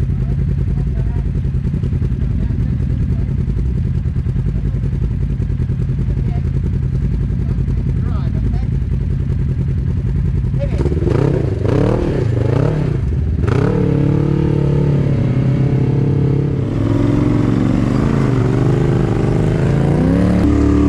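An off-road vehicle's engine rumbles steadily nearby.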